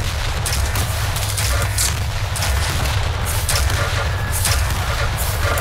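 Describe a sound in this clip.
A lightning gun crackles and buzzes in rapid bursts.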